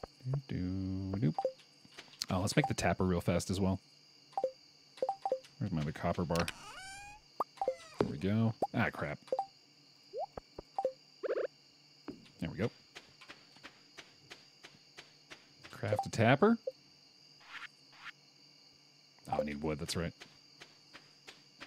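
Short game blips and clicks sound as menus open and close.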